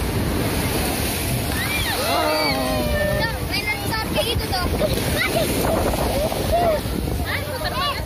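A young boy squeals and laughs nearby.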